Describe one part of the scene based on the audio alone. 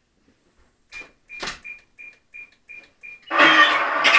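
A radio transmitter beeps several times in quick succession.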